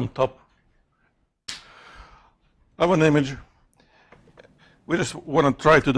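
A man speaks through a microphone, pausing between phrases.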